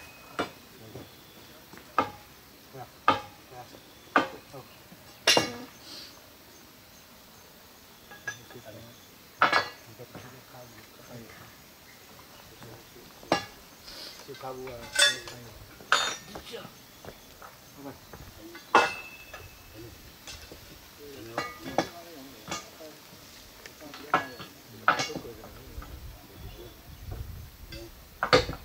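Metal tools clank sharply against steel rails, again and again.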